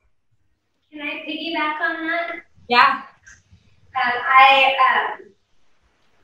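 A second woman speaks, heard through an online call.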